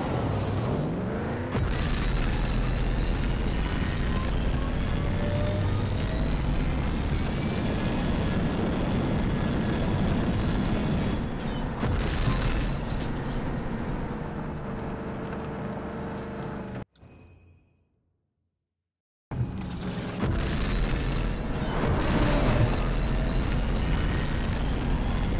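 Tyres rumble and crunch over a dirt track.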